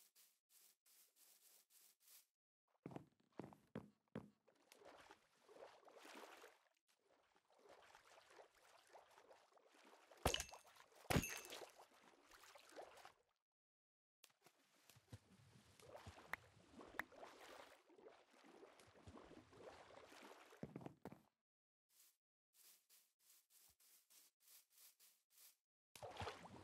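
Footsteps crunch steadily on grass and dirt.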